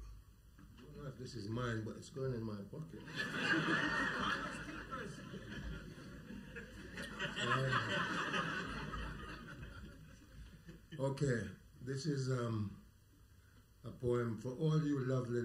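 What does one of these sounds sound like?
An elderly man reads aloud calmly into a microphone.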